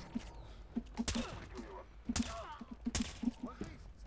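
A silenced gun fires a few muffled shots.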